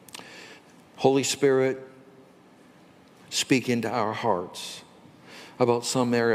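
A man speaks slowly and earnestly into a microphone, heard through loudspeakers in a large echoing hall.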